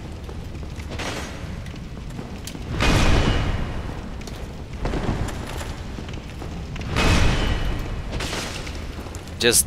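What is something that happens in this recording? Heavy weapons swing and strike with loud whooshing thuds.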